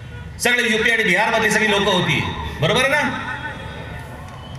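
A man speaks forcefully through loudspeakers outdoors, his voice echoing.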